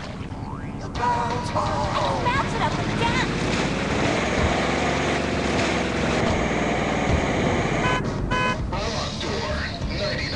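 A car engine roars and revs through a small phone speaker.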